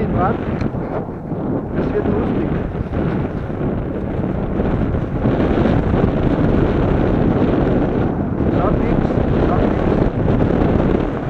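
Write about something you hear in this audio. Strong wind rushes and buffets steadily outdoors.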